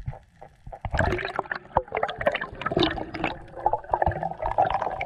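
Air bubbles gurgle and burble underwater.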